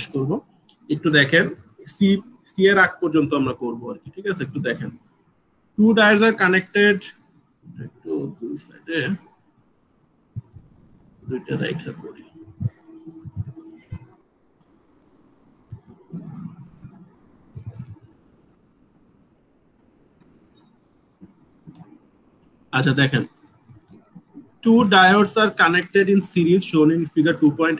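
A young man lectures calmly through a microphone, in bursts with pauses.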